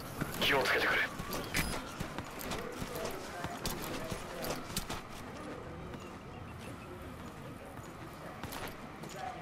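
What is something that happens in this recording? Grass rustles as a figure crawls through it.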